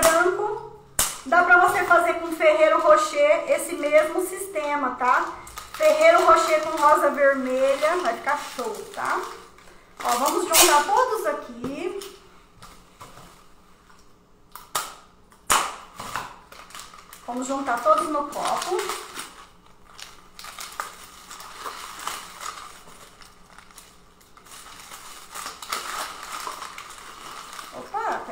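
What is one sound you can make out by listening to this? Plastic wrappers crinkle and rustle.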